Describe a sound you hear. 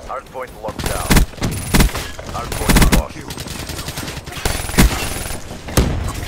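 Gunfire rattles in short, sharp bursts.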